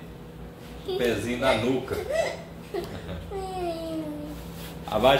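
A small child laughs.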